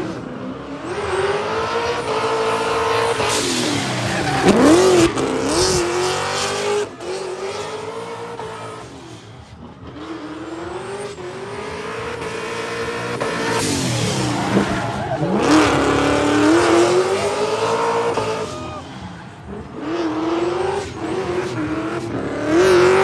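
Tyres squeal loudly as a car spins on the track.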